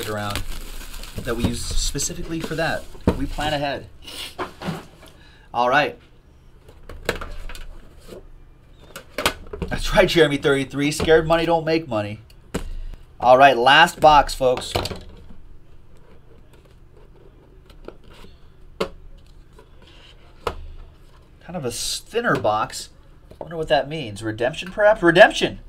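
Cardboard and plastic rustle and scrape as a box is handled.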